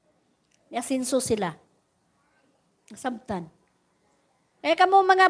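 A woman speaks into a microphone in short bursts.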